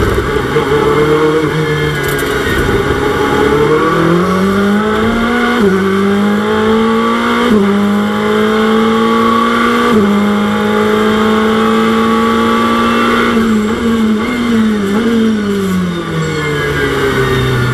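A racing car engine roars, rising in pitch and dropping with each gear change.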